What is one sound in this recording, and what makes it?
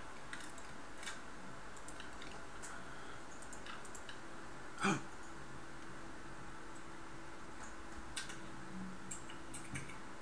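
Soft clicks sound as game menu items are moved.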